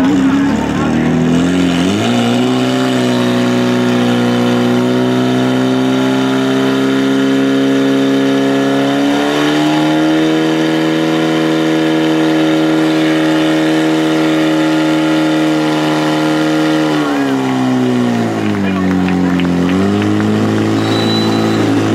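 A portable pump engine starts up and roars steadily at high revs, dipping briefly near the end.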